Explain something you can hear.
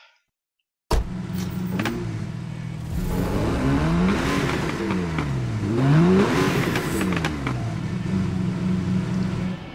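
A sports car engine idles and revs up and down.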